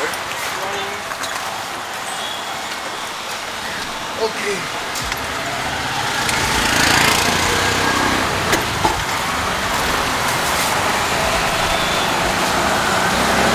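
A small three-wheeled taxi's engine putters as it drives along.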